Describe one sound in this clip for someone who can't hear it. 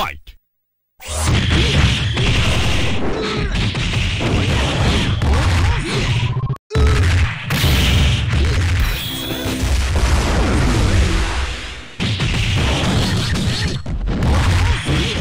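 Punches and kicks land with heavy thuds and bursts of blasts.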